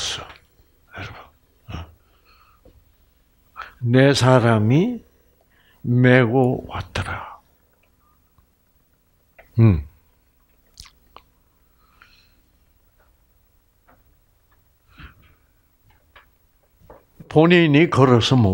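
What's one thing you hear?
An elderly man speaks into a headset microphone with pauses.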